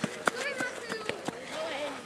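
A player kicks a football.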